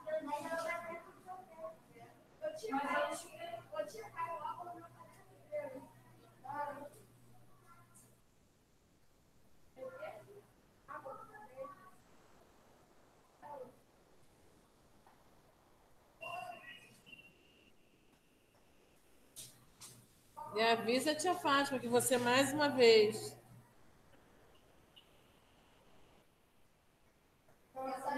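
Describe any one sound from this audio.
A woman speaks calmly through a microphone, with pauses, as if on an online call.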